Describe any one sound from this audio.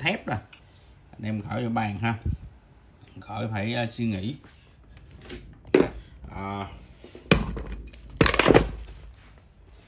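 A metal vise handle clanks and knocks as it is moved.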